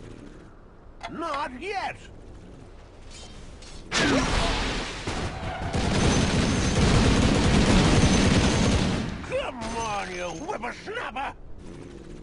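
A young man speaks with animation into a nearby microphone.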